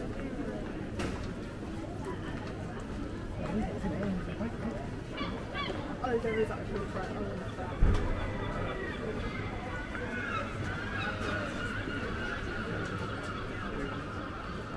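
Many people walk on paving stones.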